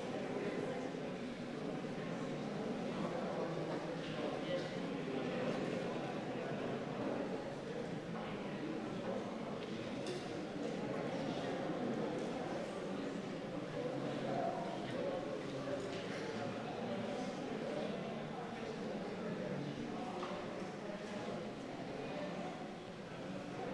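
A crowd of men and women murmurs quietly in a large room.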